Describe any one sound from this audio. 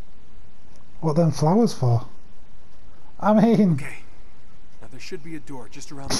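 A young man speaks quietly and calmly, close by.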